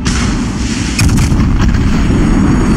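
Heavy naval guns fire a thunderous salvo.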